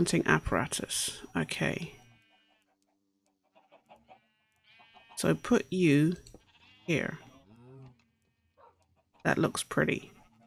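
Chickens cluck now and then.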